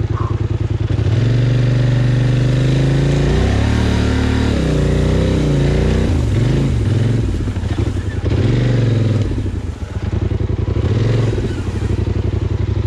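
An all-terrain vehicle's engine revs up and down as it pushes through tall grass.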